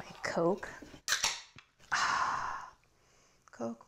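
A soda can pops open with a click and a fizzing hiss.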